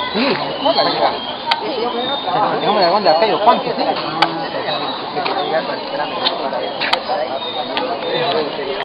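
A crowd of men, women and children chatters nearby outdoors.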